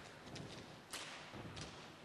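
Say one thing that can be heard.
Hands clap sharply.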